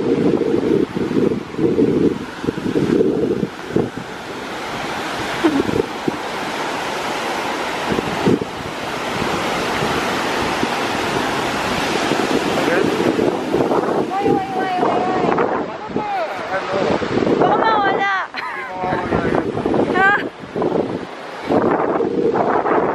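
Waves break and wash onto the shore.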